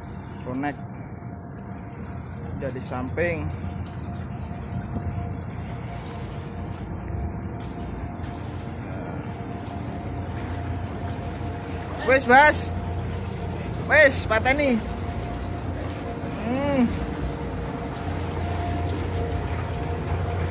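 A boat engine rumbles steadily nearby.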